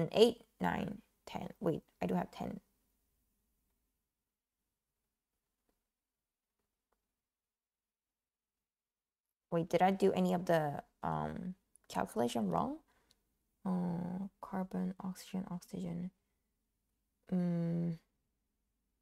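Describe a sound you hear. A young woman speaks calmly close to a microphone, with long pauses.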